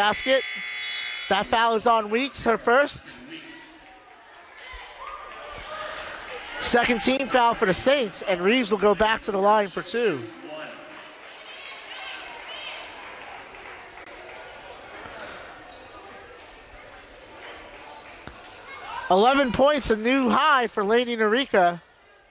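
Sneakers squeak on a hardwood floor in a large echoing gym.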